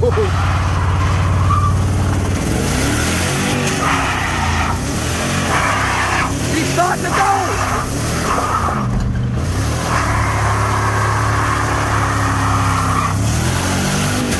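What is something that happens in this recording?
A truck engine revs hard.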